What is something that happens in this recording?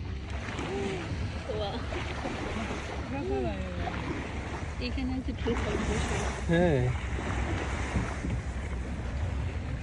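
Small waves lap and splash gently on open water.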